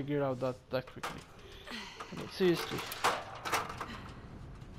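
A metal ladder clanks and scrapes against a metal beam.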